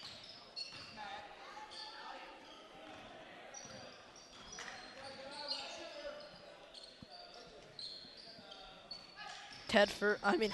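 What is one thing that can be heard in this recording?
Sneakers squeak on a hard court in an echoing gym.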